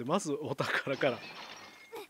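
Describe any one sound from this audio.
A ceramic vase shatters.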